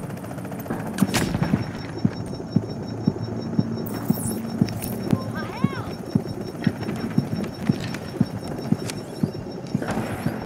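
Gunshots crack repeatedly at a steady pace.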